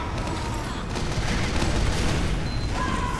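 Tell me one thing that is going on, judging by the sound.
A muffled blast booms.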